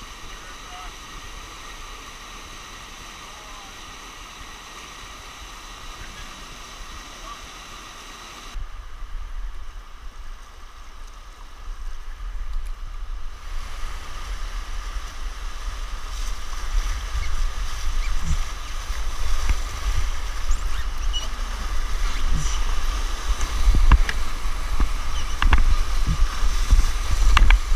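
Whitewater rapids rush and roar steadily close by.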